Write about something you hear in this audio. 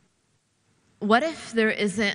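A young woman reads aloud into a microphone.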